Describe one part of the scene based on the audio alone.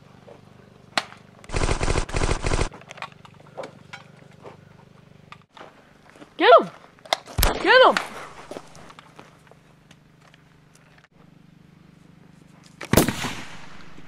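An airsoft gun fires sharp pops.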